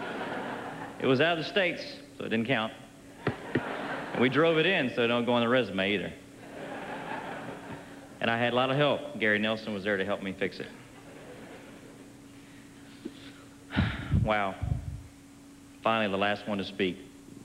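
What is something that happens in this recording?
A man speaks into a microphone with a warm, joking tone, heard through loudspeakers in a large hall.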